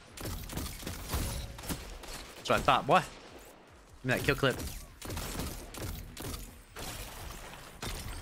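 Rapid gunfire crackles from a video game.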